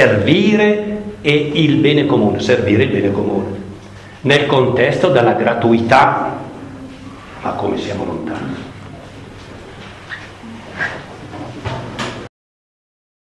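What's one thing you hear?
An elderly man reads aloud calmly through a microphone in a large echoing hall.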